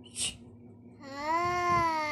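A young child calls out with a long, wavering voice close by.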